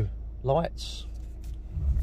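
A switch clicks on a car's steering column.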